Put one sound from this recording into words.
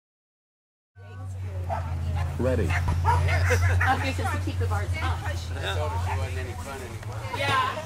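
A man calls out to a dog with animation outdoors.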